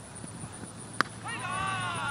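A cricket bat strikes a ball with a sharp crack in the open air.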